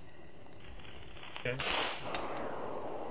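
A cartoon cannon fires with a soft boom.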